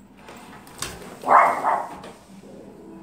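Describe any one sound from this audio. A sliding glass door rolls open.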